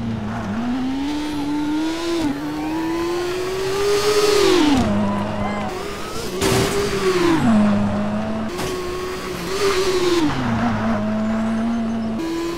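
A rally car engine revs hard, rising and falling with gear changes.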